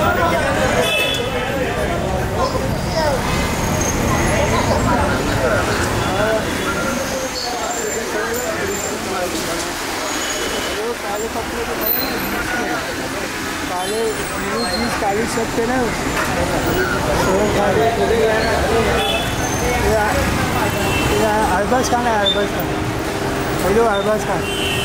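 Several men talk among themselves in a crowd outdoors.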